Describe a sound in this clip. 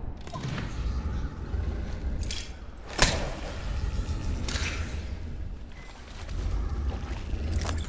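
Footsteps splash quickly through shallow water.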